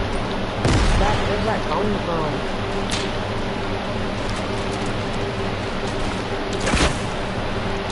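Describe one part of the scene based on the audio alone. Wooden walls snap into place with quick knocks.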